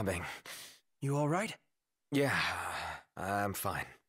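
A man asks a question calmly.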